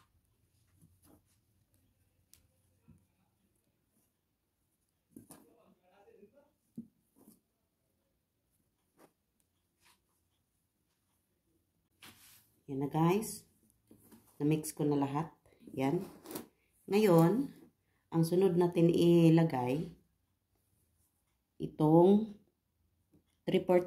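Hands rub and crumble flour in a bowl with soft rustling.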